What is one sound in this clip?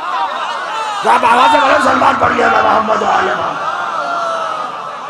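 A crowd of men cries out and calls back together.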